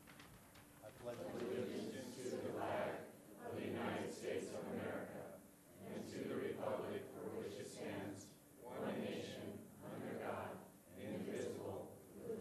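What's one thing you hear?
A crowd recites together in steady unison.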